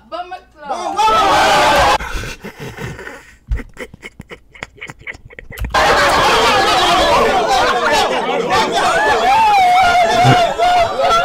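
A crowd of young people shouts and cheers loudly.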